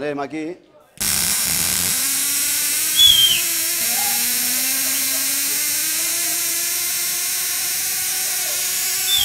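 An electrical device buzzes and hisses loudly and steadily.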